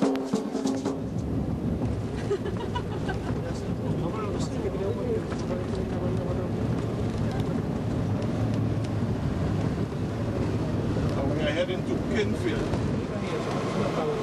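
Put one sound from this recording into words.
A bus engine rumbles steadily as it drives along.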